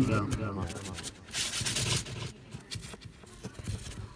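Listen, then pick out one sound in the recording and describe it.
A paintbrush scrapes lightly across a rough surface.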